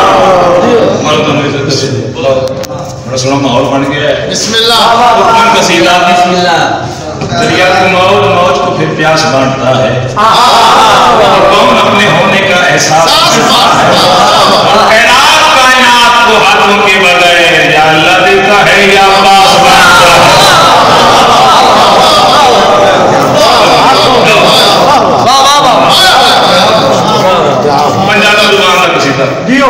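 A man speaks loudly and with passion into a microphone, heard through loudspeakers in an echoing room.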